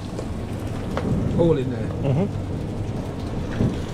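Water bubbles in a pot on the stove.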